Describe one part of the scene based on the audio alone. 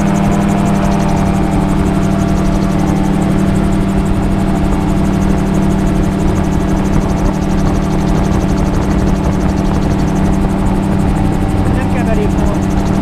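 A small aircraft's engine drones loudly and steadily up close.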